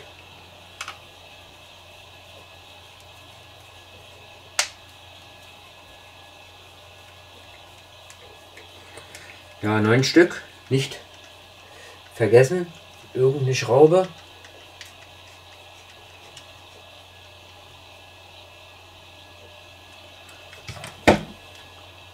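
Small plastic parts click and tap together.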